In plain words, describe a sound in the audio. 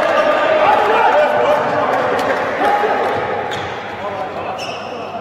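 A ball bounces on a hard court, echoing in a large empty hall.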